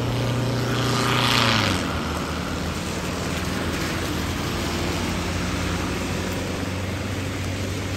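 A bus engine rumbles as it drives past.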